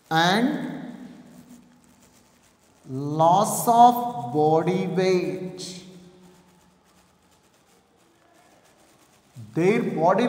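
A man speaks in a lecturing tone, with a slight room echo.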